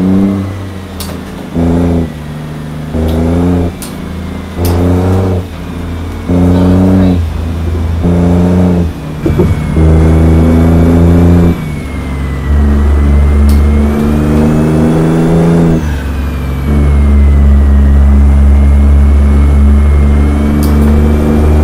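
A heavy truck engine rumbles and revs in repeated bursts.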